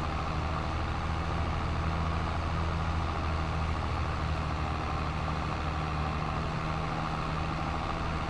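A trailer's machinery whirs as it spreads grass.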